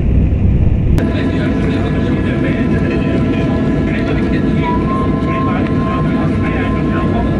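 Propeller engines roar steadily close by outside.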